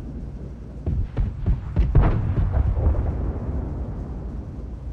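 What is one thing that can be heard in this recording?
A heavy explosion booms nearby.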